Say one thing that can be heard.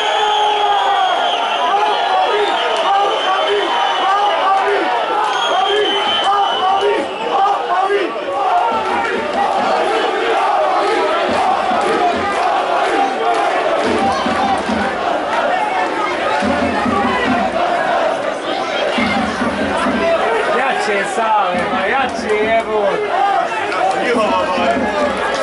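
A large crowd sings and chants loudly in an open stadium.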